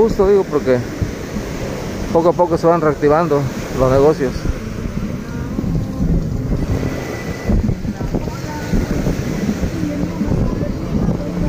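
Waves break and wash onto a sandy shore.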